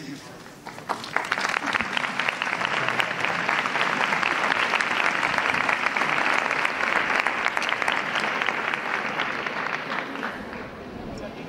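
A large crowd claps close by.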